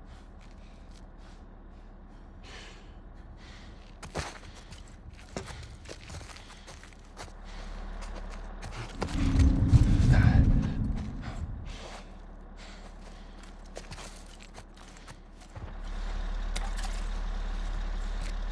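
Footsteps shuffle and crunch over scattered debris.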